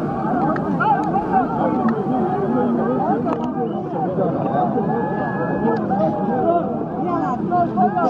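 A large outdoor crowd of men cheers and chants loudly.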